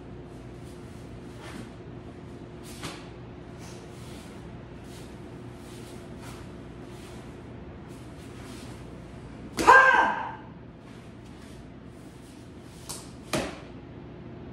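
Bare feet thump and step on foam mats.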